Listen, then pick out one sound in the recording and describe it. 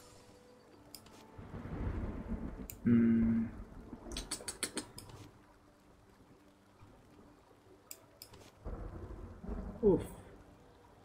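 Short game interface clicks and chimes sound as items are selected.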